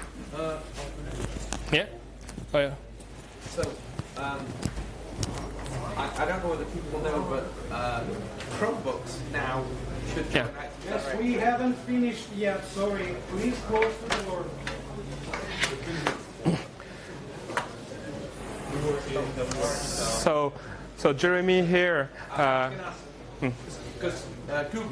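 A man speaks steadily through a microphone in a large room.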